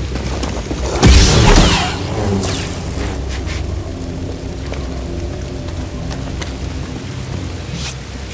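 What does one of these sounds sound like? A humming blade ignites with a sharp burst.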